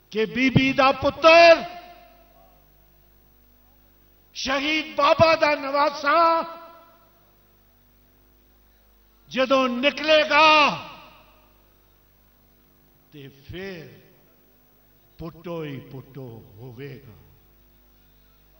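An elderly man speaks forcefully into a microphone, heard through loudspeakers, in bursts with pauses.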